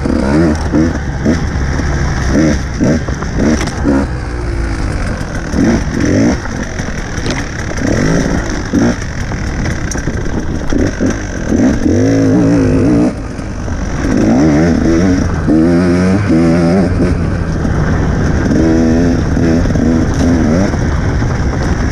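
Knobby tyres crunch over a dirt trail.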